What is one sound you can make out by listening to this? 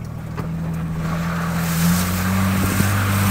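Tyres splash and slosh through mud and puddles.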